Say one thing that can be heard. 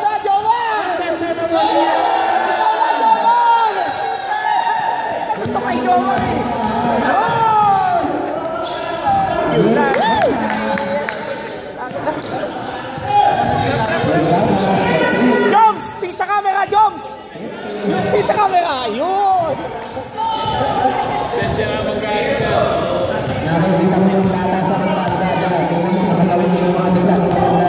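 Men shout and call out to each other across the court.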